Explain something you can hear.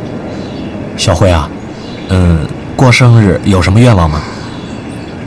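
A young man asks a question in a light, friendly voice.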